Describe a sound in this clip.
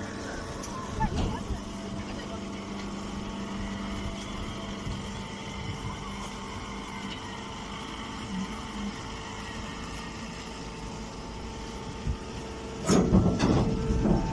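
A baling machine hums steadily.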